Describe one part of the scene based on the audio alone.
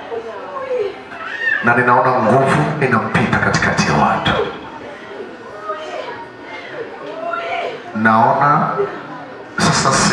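A crowd prays aloud together, many voices overlapping in a large open space.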